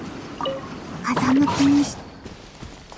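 A loud magic burst whooshes past.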